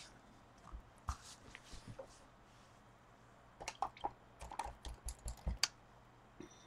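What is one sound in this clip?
A paintbrush taps and clinks against a paint jar.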